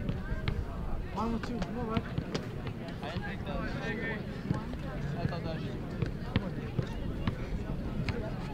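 Young men chatter and call out nearby, outdoors.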